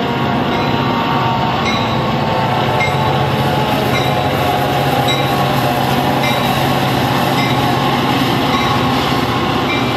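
A railway crossing bell rings steadily and repeatedly.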